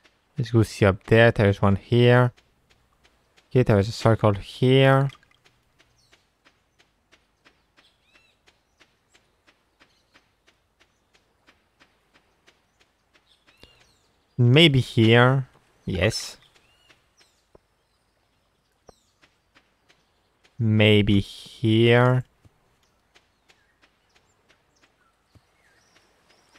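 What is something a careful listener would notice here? Soft footsteps patter quickly and evenly on sand.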